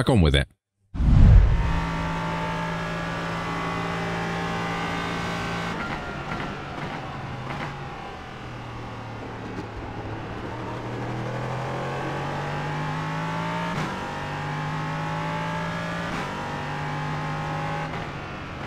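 A race car engine roars and shifts through gears.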